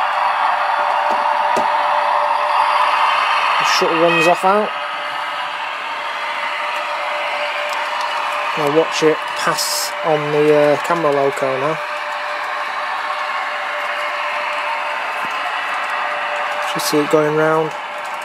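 A model train hums steadily along the track.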